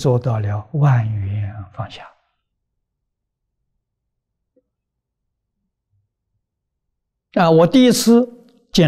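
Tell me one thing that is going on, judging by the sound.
An elderly man speaks calmly and close to a microphone, with long pauses.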